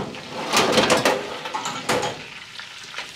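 A metal oven rack rattles and clanks as it slides.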